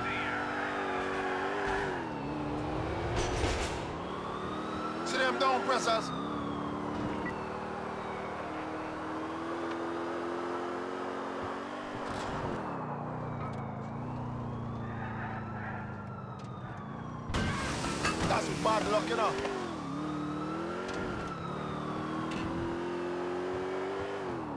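A police siren wails up and down.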